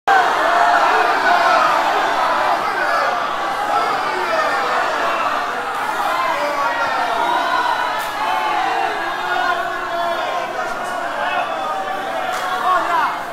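A large crowd of men and women calls out loudly together in an echoing hall.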